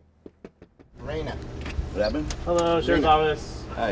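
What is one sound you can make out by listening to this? A man speaks loudly outdoors, close by.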